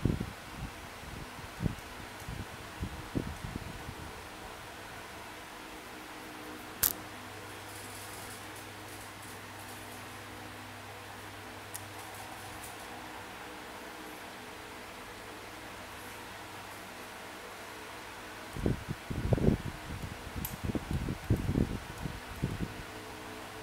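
Fingers tap lightly on a touchscreen.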